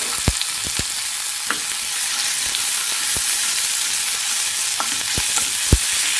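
A wooden spoon scrapes and knocks against a metal pan.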